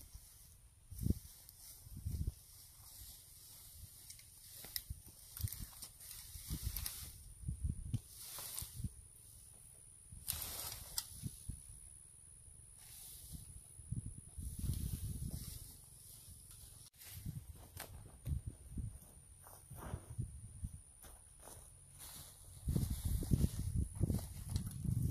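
Leafy branches rustle and snap as a man pushes through dense brush.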